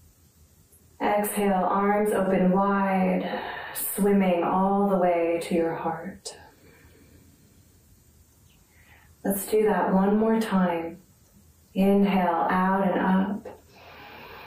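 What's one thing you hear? A woman speaks calmly and clearly close by, giving instructions.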